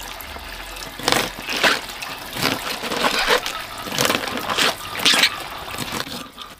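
A knife cuts crisply into a cabbage.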